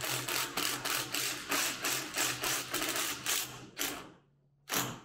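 An impact driver rattles in rapid bursts, driving a screw.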